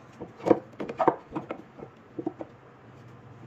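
Small wooden blocks knock and clatter against each other.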